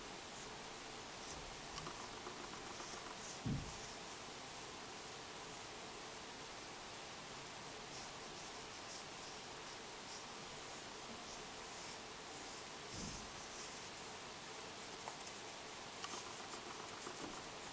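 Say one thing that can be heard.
A pencil softly scratches on paper.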